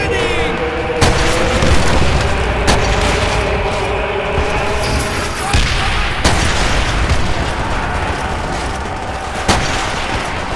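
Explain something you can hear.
A bolt-action rifle fires single shots.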